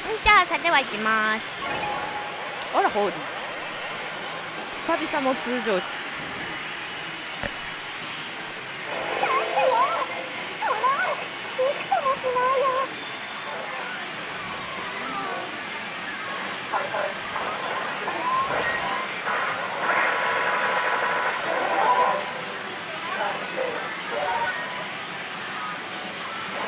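A slot machine plays jingles and electronic sound effects.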